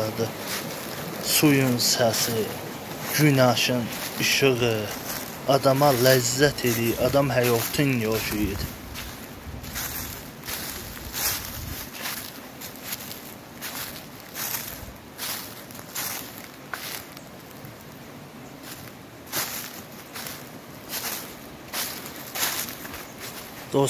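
A small stream babbles over rocks nearby.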